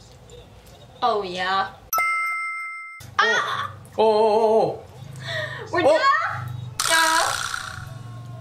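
A young woman speaks with excitement close by.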